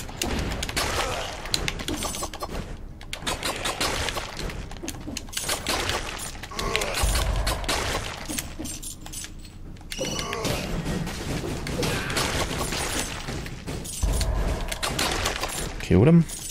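Blades slash and enemies are hit with quick thuds and splashes.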